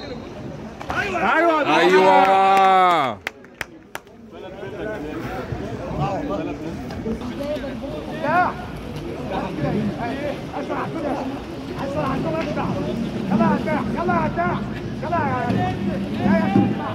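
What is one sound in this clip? Spectators shout and cheer loudly in an echoing hall.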